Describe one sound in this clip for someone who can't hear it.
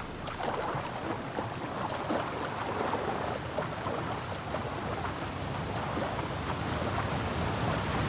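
Water splashes with swimming strokes.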